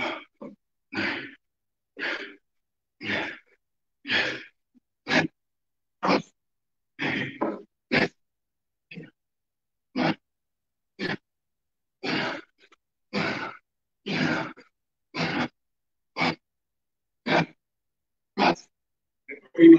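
A man breathes out hard in a steady rhythm during exercise.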